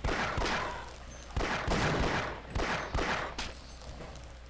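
A pistol fires several quick shots.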